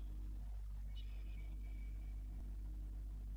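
A game menu opens with a soft chime.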